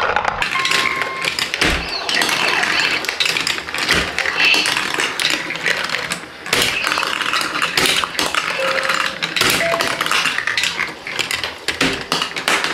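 A marble wheel turns with clicking sounds.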